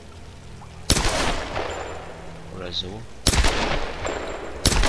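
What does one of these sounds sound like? A pistol fires loud shots that echo.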